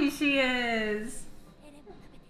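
A young woman squeals excitedly close by.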